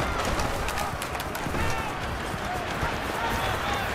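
Players collide in a tackle with a thud.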